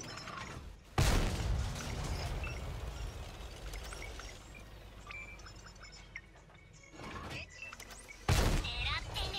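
A tank cannon fires with a loud boom that rumbles away.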